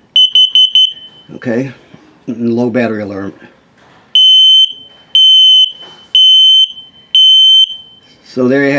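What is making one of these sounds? A detector alarm beeps loudly and shrilly, first in quick chirps, then in long, evenly spaced beeps.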